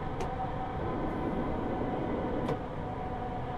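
A train rumbles louder as it passes under a bridge.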